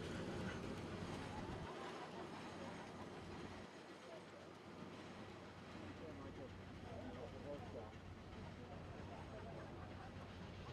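Wheels rumble and clank on rails.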